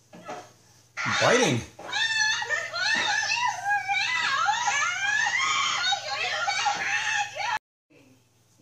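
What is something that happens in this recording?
A young woman screams in panic.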